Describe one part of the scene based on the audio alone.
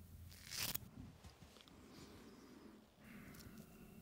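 A young man whispers softly close to a microphone.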